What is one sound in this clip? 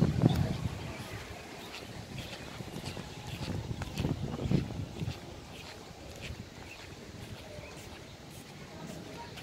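Footsteps tap on paving outdoors.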